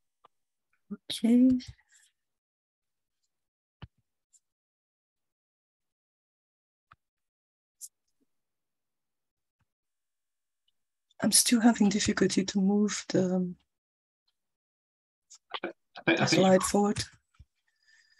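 A woman speaks calmly over an online call, in short bursts.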